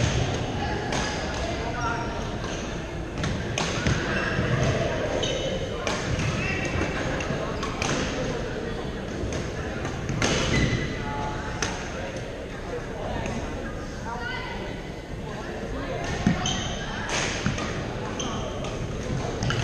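Shoes squeak on a hard floor in a large echoing hall.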